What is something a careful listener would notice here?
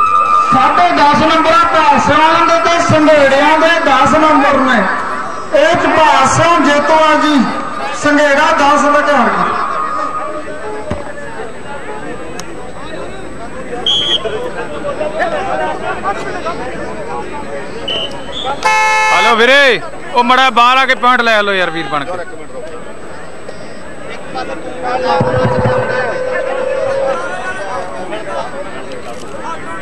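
A large outdoor crowd murmurs in the distance.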